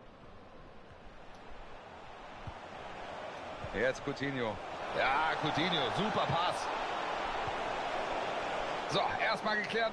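A stadium crowd roars, growing louder.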